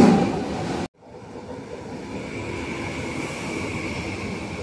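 A train hums steadily while rolling slowly past.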